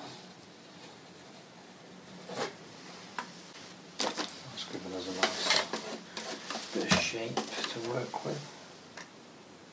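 A brush scrapes and dabs on canvas.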